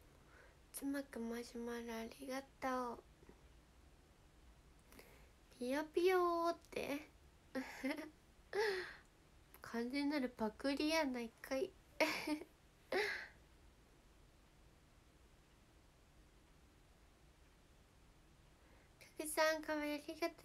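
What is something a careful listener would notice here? A young woman speaks softly and cheerfully, close to a microphone.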